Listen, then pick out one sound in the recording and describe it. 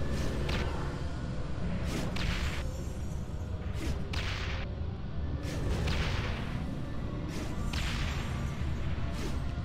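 Spell effects whoosh and burst in quick bursts.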